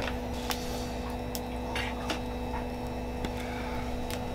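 Ice cubes clink against a glass as tongs drop them in.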